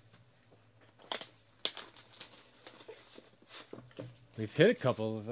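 Plastic wrap crinkles as hands tear it off a box.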